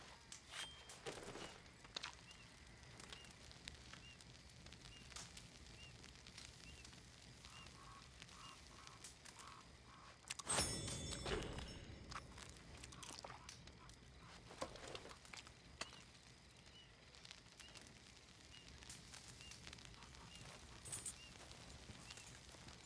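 Meat sizzles over a campfire.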